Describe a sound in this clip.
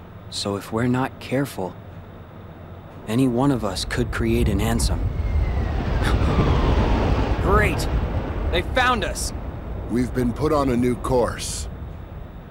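A young man speaks calmly close to a microphone.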